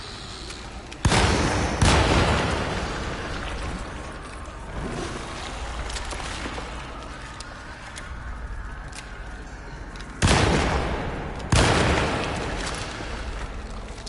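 Gunshots boom loudly and echo through a large hall.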